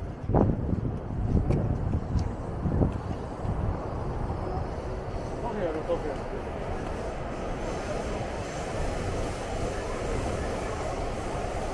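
A steady murmur of a busy street fills the air.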